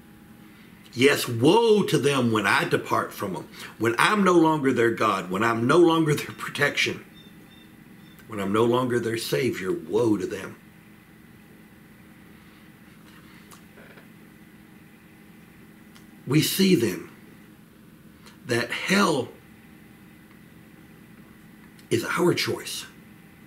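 An older man talks calmly and with animation, close by, with pauses.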